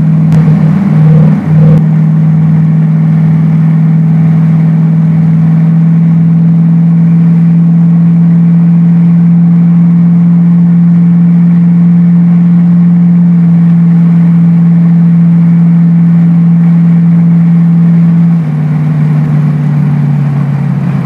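A car engine hums steadily from inside the car, dropping lower near the end.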